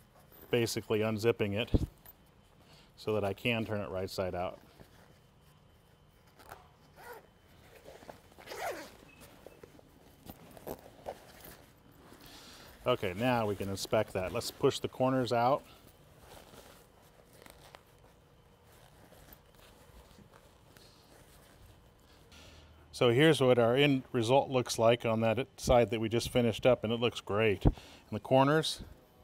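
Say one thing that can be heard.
A man talks calmly and clearly into a nearby microphone.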